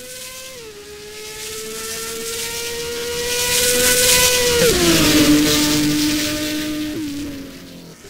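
A racing car engine drops in pitch with each gear shift.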